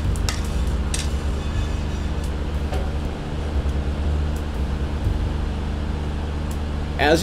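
Dry beans rattle and slide as a pan is shaken on a stove.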